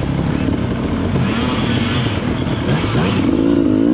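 A dirt bike splashes through muddy water.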